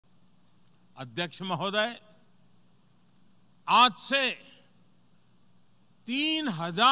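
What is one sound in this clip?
An elderly man speaks forcefully into a microphone, in bursts with pauses.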